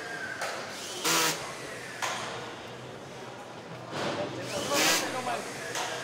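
A power screwdriver whirs in short bursts.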